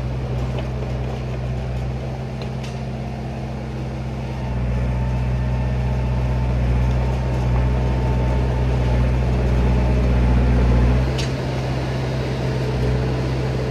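A diesel engine of a tracked machine rumbles steadily nearby, growing louder as the machine moves closer.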